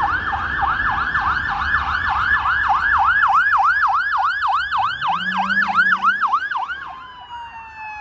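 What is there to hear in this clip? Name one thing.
A police car siren yelps as the car passes.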